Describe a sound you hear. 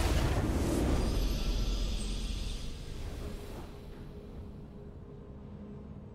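A triumphant game jingle rings out and slowly fades.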